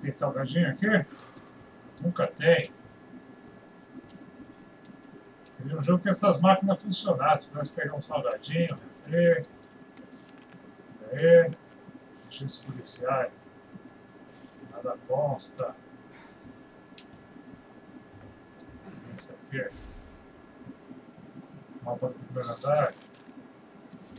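A middle-aged man talks calmly and close to a microphone, in short bursts.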